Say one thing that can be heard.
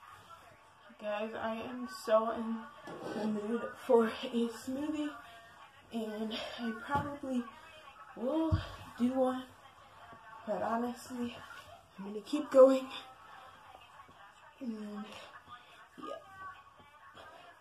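A girl talks with animation close by.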